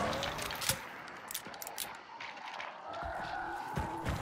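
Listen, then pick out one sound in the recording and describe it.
A shotgun is snapped open and clicked shut.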